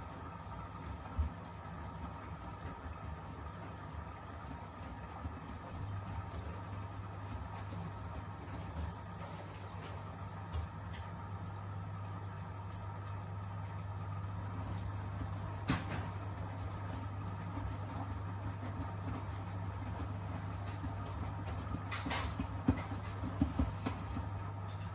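Wet laundry sloshes and thumps inside a washing machine drum.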